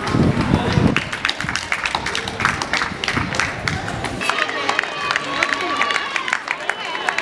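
Spectators clap their hands outdoors.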